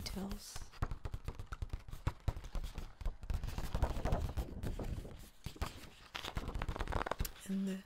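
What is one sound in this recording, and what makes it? Fingers tap on a paper poster.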